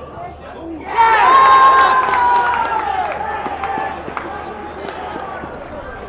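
A crowd cheers loudly and the cheer slowly fades.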